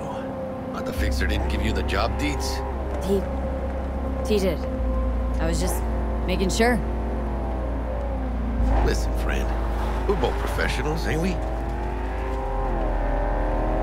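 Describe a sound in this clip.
Tyres rumble on a dirt road.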